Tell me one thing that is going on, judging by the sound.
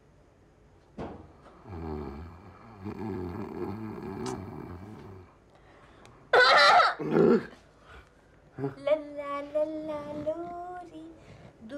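A young woman sings a lullaby softly.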